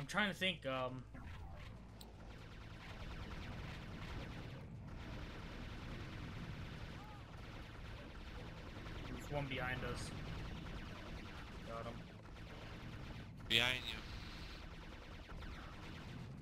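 A heavy gun fires in a rapid, steady stream.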